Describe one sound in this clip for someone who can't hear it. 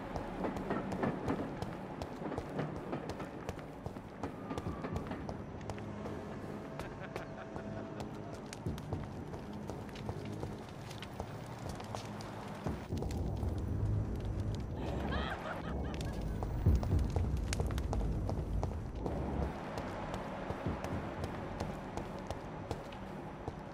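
Footsteps thud on hard ground as a man walks.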